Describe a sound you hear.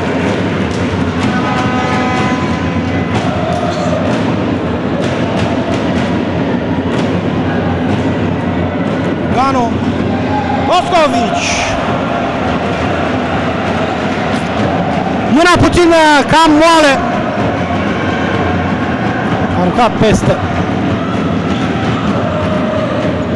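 Crowd noise fills a large echoing indoor hall.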